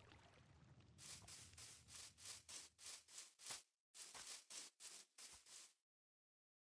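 Footsteps thud on grass at an even pace.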